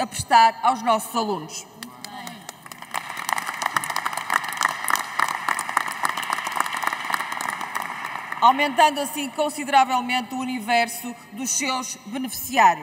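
A middle-aged woman speaks steadily into a microphone.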